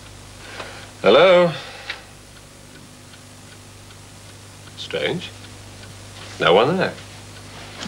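A man talks on a phone in short bursts.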